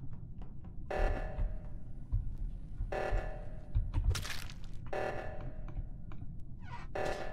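A game alarm blares in repeated short bursts.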